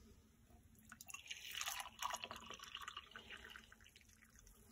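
Coffee pours into a mug.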